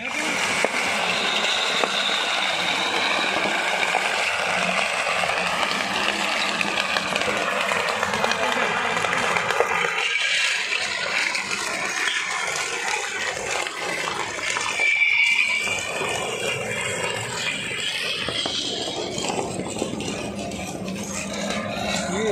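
Glass bottles crunch and shatter under a heavy roller.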